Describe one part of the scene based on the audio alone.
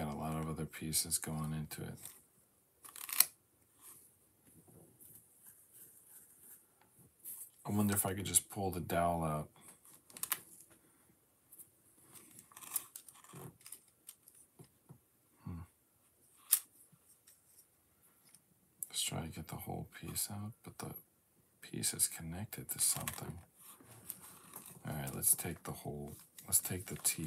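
Plastic toy bricks click and rattle as they are snapped together.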